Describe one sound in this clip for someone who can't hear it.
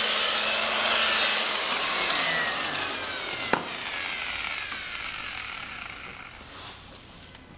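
A power polisher whirs loudly against a car door.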